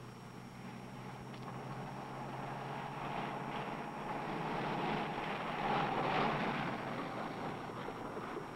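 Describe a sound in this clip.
A car engine hums and draws closer.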